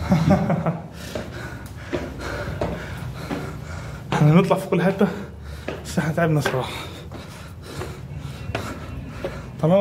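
Footsteps climb stone steps.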